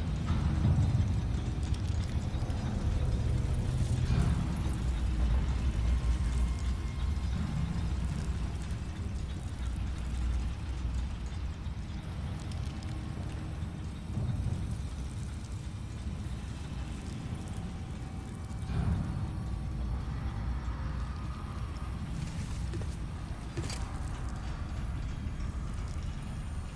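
Heavy armoured footsteps clank on a stone floor.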